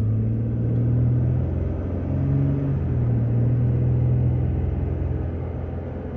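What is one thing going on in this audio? A car engine hums low and steady from inside a moving car.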